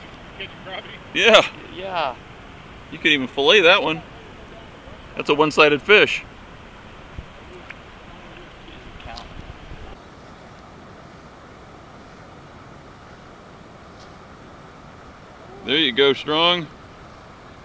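A young man speaks casually nearby, outdoors.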